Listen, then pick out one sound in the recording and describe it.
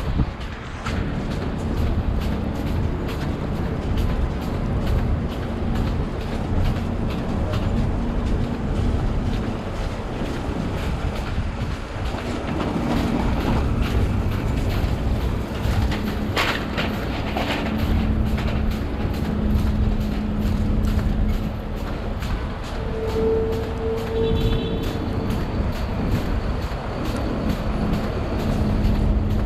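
City traffic rumbles steadily along a street outdoors.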